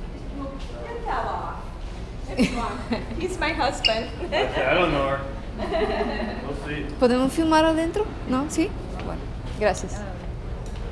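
A man speaks calmly with a middle-aged woman close by.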